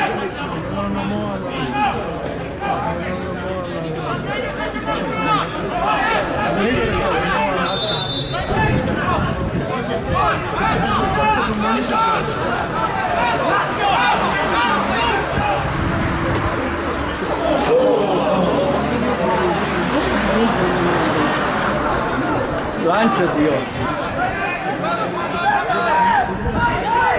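Football players shout to each other across an open pitch.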